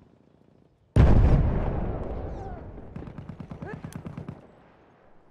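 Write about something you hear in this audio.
An explosion booms close by and rumbles away.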